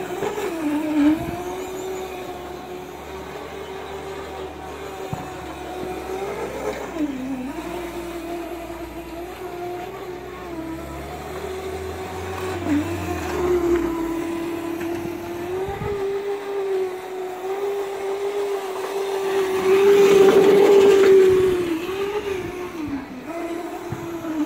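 An electric kart's motor whines steadily, rising and falling in pitch as it turns.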